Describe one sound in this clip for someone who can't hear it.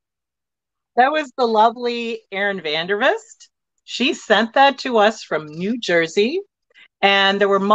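A woman talks warmly over an online call.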